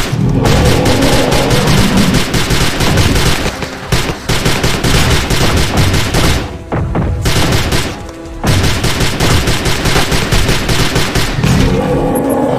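A gun fires in rapid bursts, close by.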